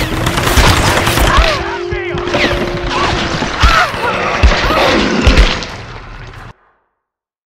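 A young woman cries out and groans in pain, close by.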